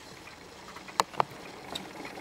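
A gramophone needle clicks down onto a spinning record.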